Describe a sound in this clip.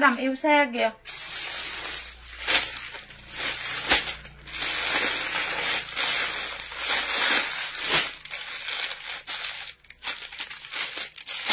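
Clothes rustle and crinkle in plastic bags as they are handled.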